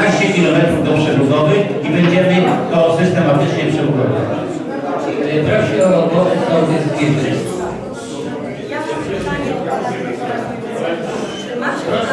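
A man speaks loudly among a crowd.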